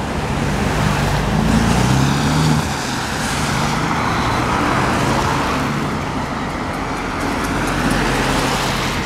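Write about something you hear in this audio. Tyres roll on wet asphalt with a steady hiss.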